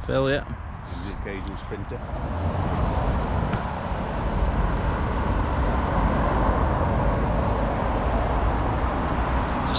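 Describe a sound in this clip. Wind gusts loudly outdoors, buffeting the microphone.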